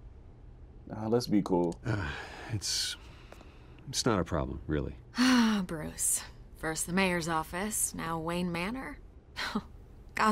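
A woman speaks calmly, then with animation, close by.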